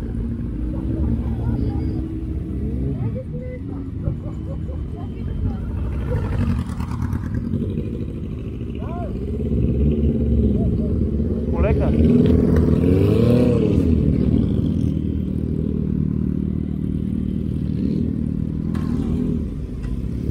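Other motorcycle engines rev and pass nearby, rising and falling.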